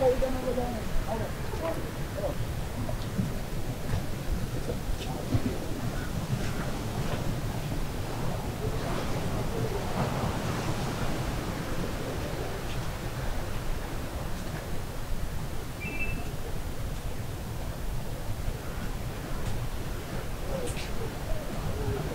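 Wind blows steadily against the microphone outdoors.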